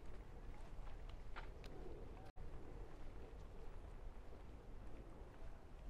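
A group of adults chats while walking past close by, outdoors.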